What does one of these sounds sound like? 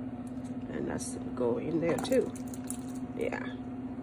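Chunks of cooked meat drop into broth.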